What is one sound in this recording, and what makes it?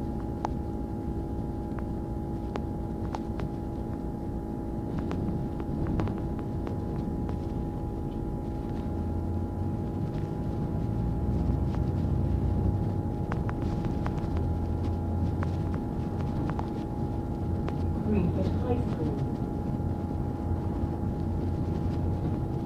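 A bus engine hums steadily from inside the moving bus.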